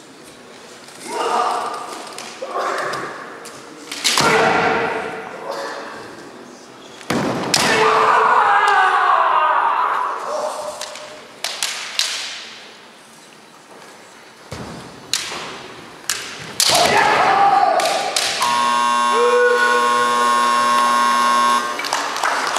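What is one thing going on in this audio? Kendo fighters shout loud kiai cries in a large echoing hall.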